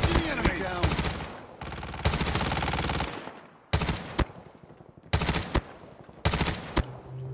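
A rifle fires in short rapid bursts.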